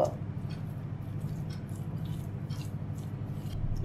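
Hands squish and mix a soft, moist food mixture.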